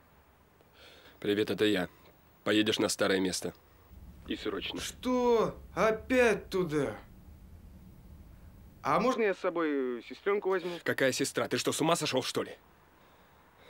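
A man talks on a mobile phone in a calm, close voice.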